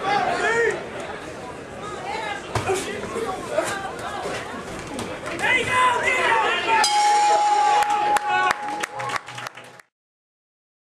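A crowd of people shout and cheer close by.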